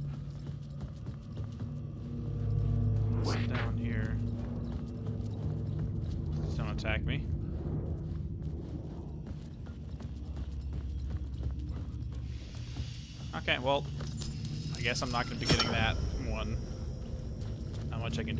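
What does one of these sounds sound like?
Footsteps crunch on gravel and rail ties.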